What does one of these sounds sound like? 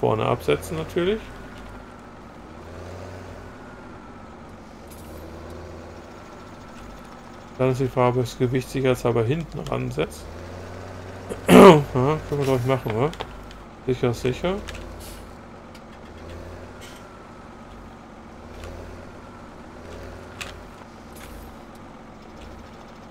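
A tractor engine rumbles low and steadily.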